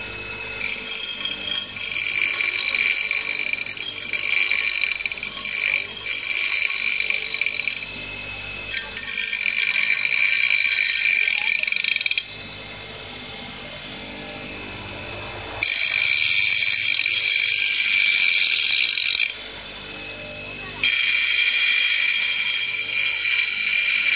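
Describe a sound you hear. Metal grinds against a spinning wheel with a harsh, high screech, in bursts.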